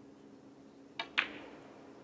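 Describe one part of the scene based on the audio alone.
A cue tip strikes a snooker ball with a sharp click.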